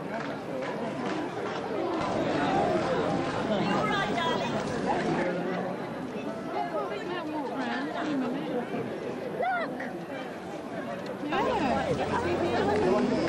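A large outdoor crowd chatters and murmurs nearby.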